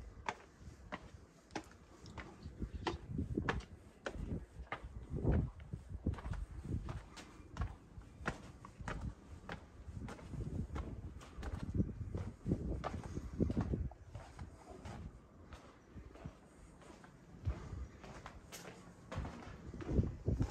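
Footsteps climb stone steps at a steady pace.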